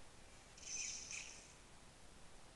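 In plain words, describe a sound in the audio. A creature lets out a short, shrill dying scream.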